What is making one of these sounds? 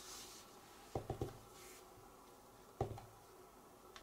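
A stamp block knocks down onto a tabletop.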